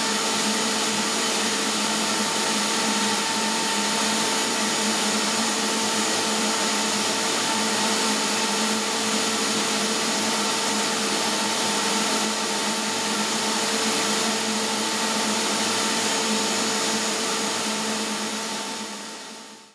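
A router spindle whines steadily while cutting wood, then fades away.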